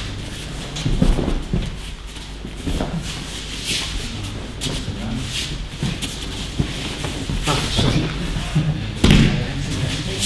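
Bodies thud onto mats in a large echoing hall.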